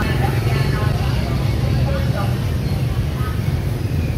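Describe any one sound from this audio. People chatter around a busy street market.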